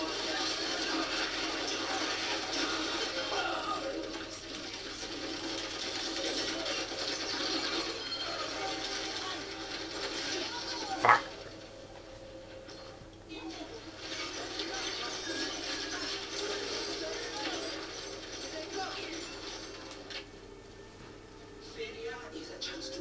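Gunfire from a video game plays through a television speaker.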